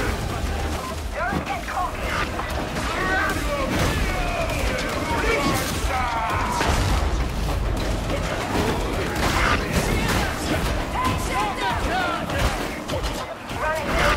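Guns fire in rapid bursts amid loud clashing combat noise.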